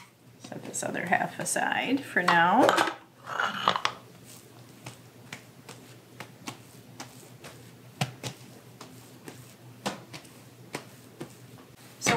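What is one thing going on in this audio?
Hands knead and slap dough.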